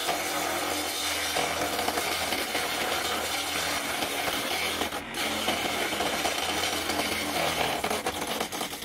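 A chisel scrapes against spinning wood.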